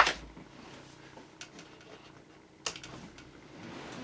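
A lamp switch clicks.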